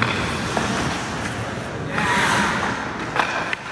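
Hockey skates scrape and carve on ice.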